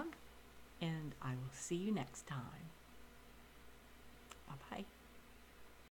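An elderly woman speaks calmly and close, heard through a microphone.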